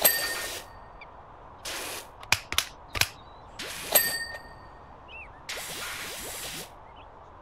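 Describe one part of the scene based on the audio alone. A pressure washer sprays water in short hissing bursts.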